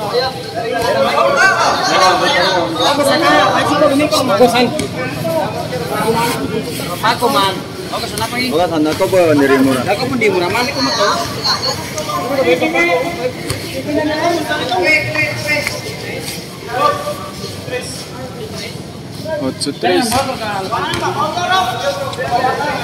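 A crowd of young men talks and shouts all around, echoing in a large open hall.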